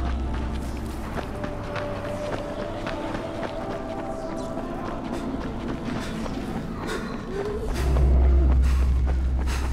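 Footsteps scuff steadily along pavement.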